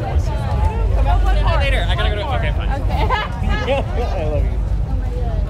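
A young woman talks loudly up close.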